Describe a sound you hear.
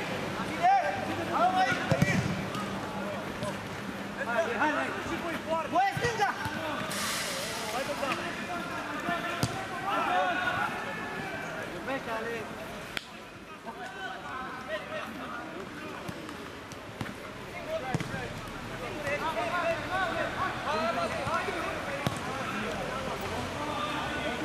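A football thuds as it is kicked on an outdoor pitch.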